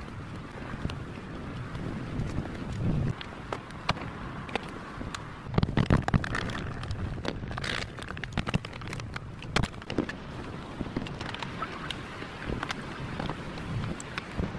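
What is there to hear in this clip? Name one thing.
Plastic parts click and clatter as a car light is handled.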